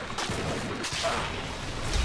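A loud blast bursts nearby.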